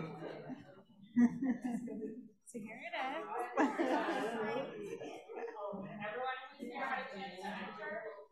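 Several adults chat quietly in a room with some echo.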